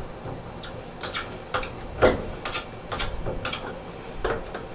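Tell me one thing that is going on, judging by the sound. Metal parts clink and tap against each other.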